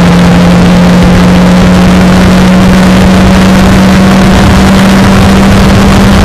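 The engine of a Formula Renault 2.0 race car drones at high revs, its pitch holding steady.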